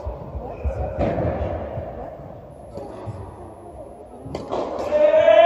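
A tennis ball is struck with a racket, echoing through a large hall.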